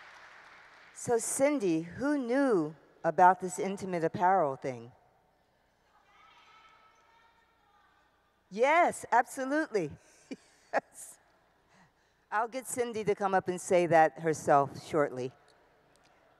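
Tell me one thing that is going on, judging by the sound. A woman speaks warmly into a microphone.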